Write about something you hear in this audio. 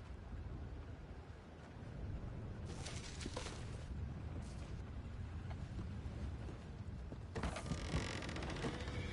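Boots thud on wooden floorboards.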